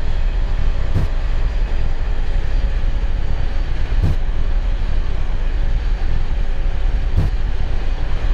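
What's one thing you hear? Wheels thump over runway joints at regular intervals.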